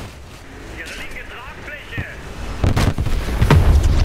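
Flames roar and crackle from a burning jet.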